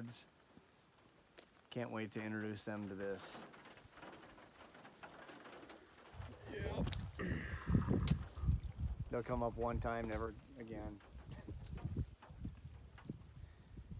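Small waves lap gently at the edge of a calm lake.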